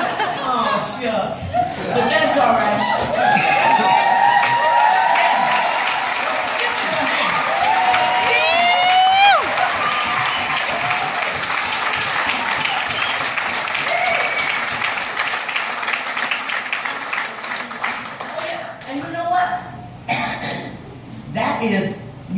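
A crowd chatters and cheers close by.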